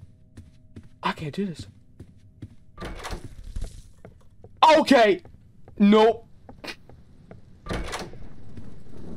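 A young man talks animatedly and exclaims close to a microphone.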